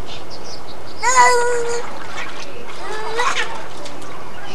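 A small child squeals nearby.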